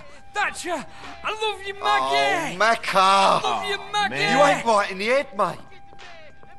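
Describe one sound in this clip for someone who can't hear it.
Young men shout excitedly and laugh.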